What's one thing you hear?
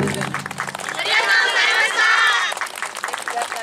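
A group of women shout and chant together.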